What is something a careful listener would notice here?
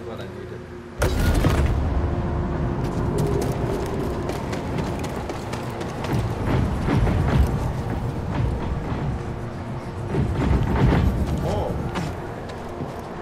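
A large metal ball rumbles as it rolls over stone.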